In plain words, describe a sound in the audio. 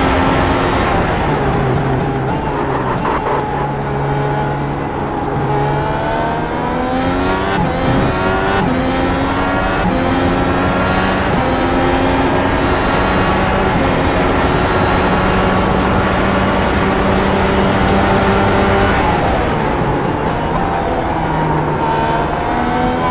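A racing car engine revs high, climbing through the gears and dropping back as it brakes.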